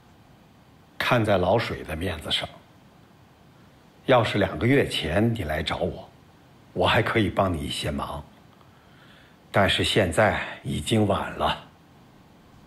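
An older man speaks slowly and calmly, close by.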